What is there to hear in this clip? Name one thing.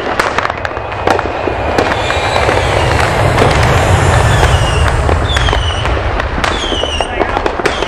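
Sparks fizz and crackle from a ground firework.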